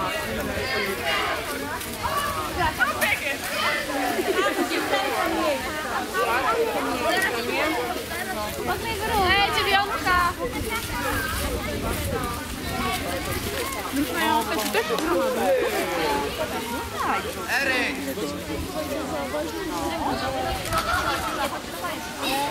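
A crowd of children chatters and calls out outdoors nearby.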